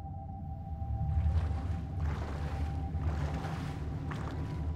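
Water splashes and bubbles churn as a person plunges under the surface.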